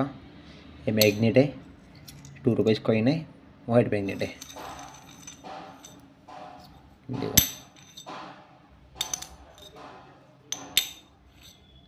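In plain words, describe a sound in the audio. A magnet clicks against a metal coin.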